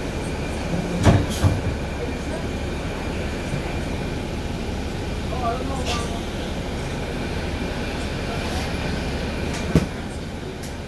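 A bus rattles and thumps over bumps in the road.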